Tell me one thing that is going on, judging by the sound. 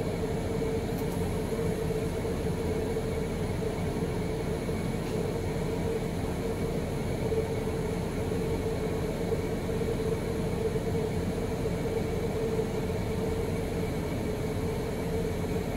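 A welding arc crackles and sizzles steadily.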